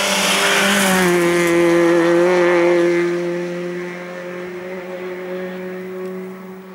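A rally car engine roars on into the distance, dropping in pitch.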